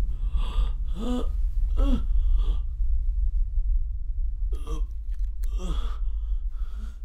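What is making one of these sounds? A man groans weakly in pain close by.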